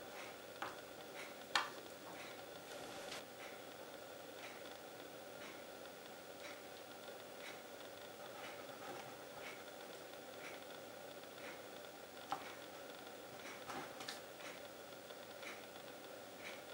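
A plastic knife taps on a cutting board.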